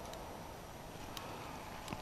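A fishing reel clicks as it is wound.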